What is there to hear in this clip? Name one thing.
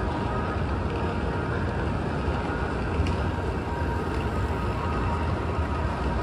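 Suitcase wheels roll and rattle over paving.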